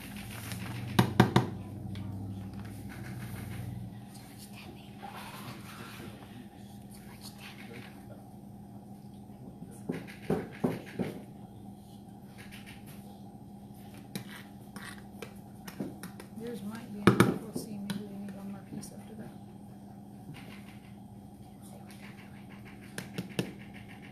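A knife scrapes and taps while cutting fruit.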